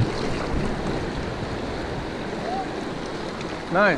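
A paddle splashes in the water.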